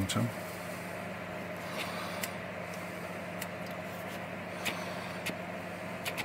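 Small scissors snip with soft, sharp clicks.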